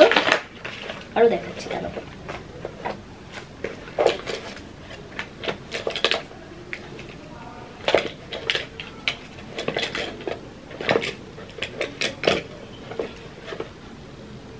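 Small plastic items click and rattle in a young woman's hands.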